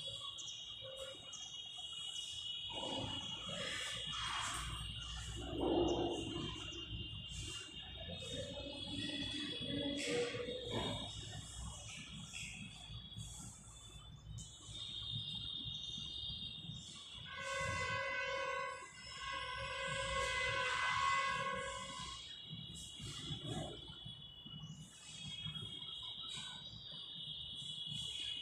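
Chalk scrapes and taps against a blackboard.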